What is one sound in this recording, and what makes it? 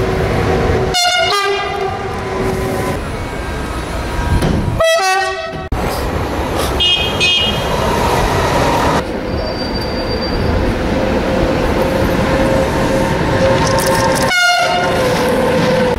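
A train horn blasts loudly.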